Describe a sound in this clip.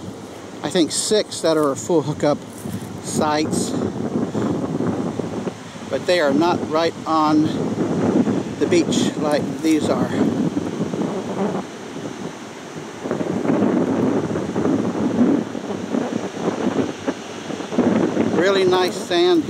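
Wind blows steadily across open ground outdoors.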